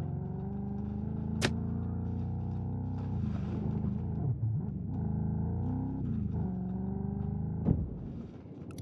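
An engine roars as an off-road buggy drives over rough ground.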